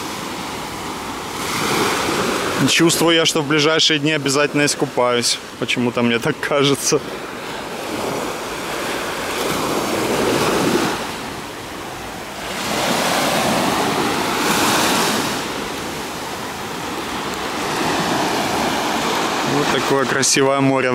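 Small waves wash up and hiss over sand, close by.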